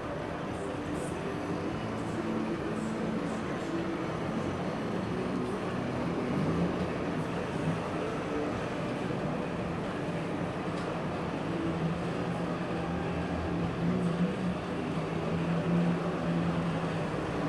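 A line of old cars drives past close by, with engines buzzing and puttering.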